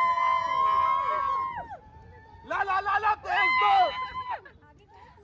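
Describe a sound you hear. Men cheer and call out loudly nearby.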